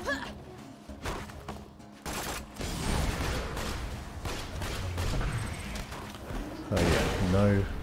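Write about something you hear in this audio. Gunfire crackles in rapid bursts with explosions.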